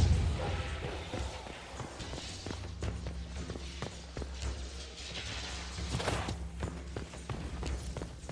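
Footsteps tap on stone floors at a steady pace.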